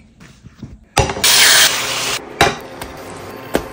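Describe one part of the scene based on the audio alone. Oil sizzles in a hot pan.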